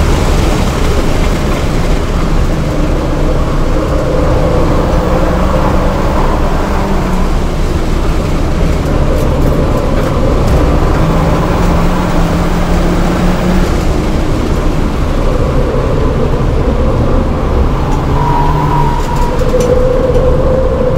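Tyres roar on asphalt at speed.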